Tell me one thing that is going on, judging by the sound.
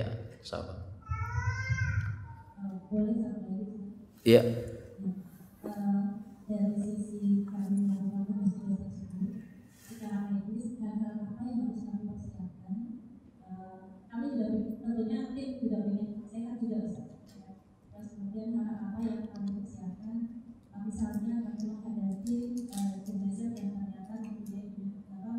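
A man speaks calmly into a microphone in a slightly echoing room.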